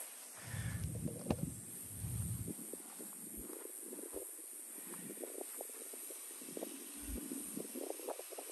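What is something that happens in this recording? A golf club swishes and brushes the grass.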